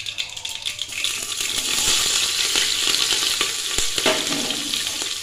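Chopped vegetables drop into hot oil and sizzle loudly.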